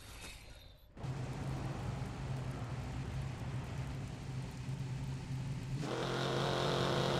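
A car engine hums at idle.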